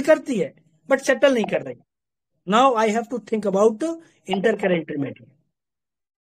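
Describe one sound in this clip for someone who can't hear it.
A middle-aged man talks with animation over an online call.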